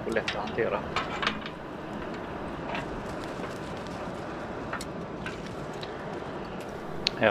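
Coals crackle softly in a fire.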